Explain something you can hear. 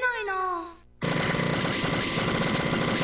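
Rapid electronic gunfire and explosions blare from an arcade shooting game.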